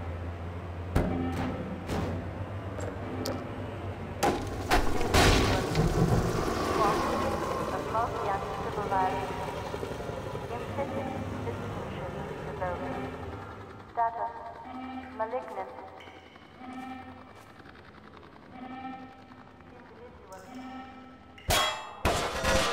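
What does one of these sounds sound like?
A metal barrel clanks and thuds against hard surfaces.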